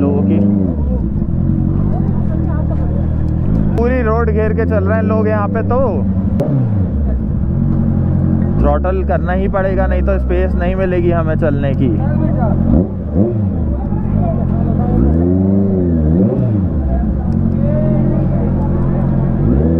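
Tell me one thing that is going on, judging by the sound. A motorcycle engine runs with a steady low rumble.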